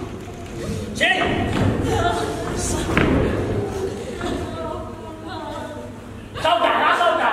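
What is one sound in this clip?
Young men speak loudly in turn, heard from across an echoing hall.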